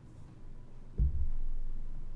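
A thump sounds close to a microphone.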